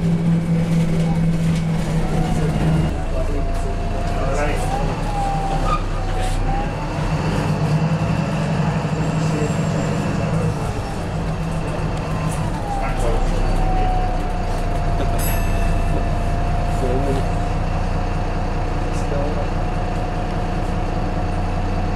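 A bus body rattles and clatters over the road.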